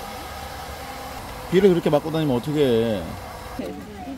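A hair dryer blows with a steady whir.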